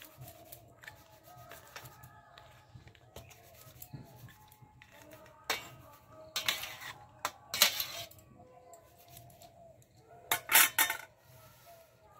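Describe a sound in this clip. A metal spatula scrapes against a metal bowl.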